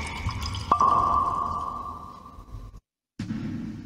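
Wine pours and gurgles into a glass close to a microphone.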